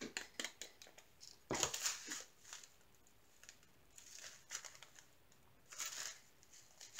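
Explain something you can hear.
Plastic bags crinkle and rustle in hands.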